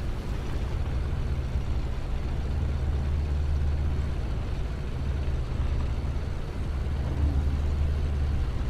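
A tank engine rumbles low and steady as the tank drives.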